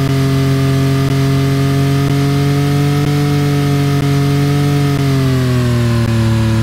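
A sports car engine hums loudly and steadily, its pitch dropping near the end.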